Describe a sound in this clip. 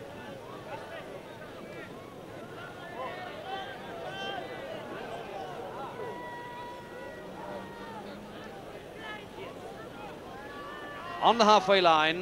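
A large crowd murmurs and cheers outdoors.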